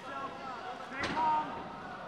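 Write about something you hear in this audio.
A kick thuds against a fighter's body.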